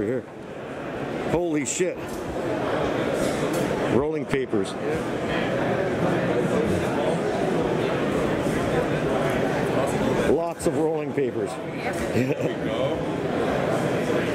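Several people talk nearby in bursts.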